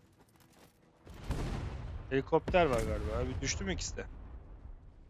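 Gunfire and a loud explosion burst out.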